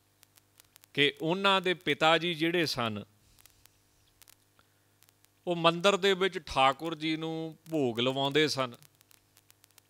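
A man chants slowly in a steady voice close to a microphone, pausing between phrases.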